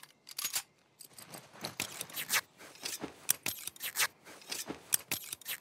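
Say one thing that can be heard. Small metal and cloth items rattle and scrape.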